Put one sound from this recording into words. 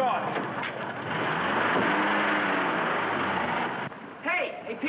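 A car engine idles and revs on a street.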